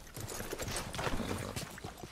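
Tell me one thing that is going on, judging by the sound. A horse's hooves thud on snow.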